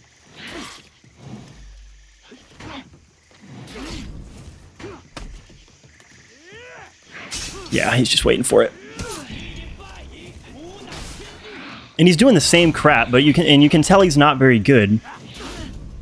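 Metal blades clash and clang in a sword fight.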